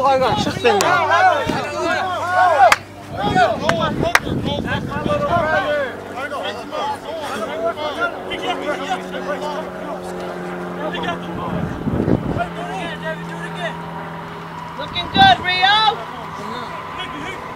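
Rugby players call out to each other across an open field.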